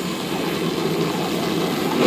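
A jet engine hums and whooshes.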